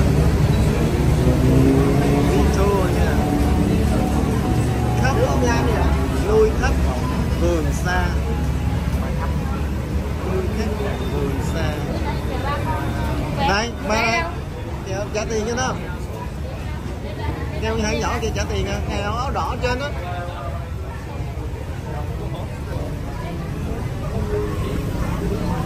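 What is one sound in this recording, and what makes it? A crowd of people chatters outdoors on a busy street.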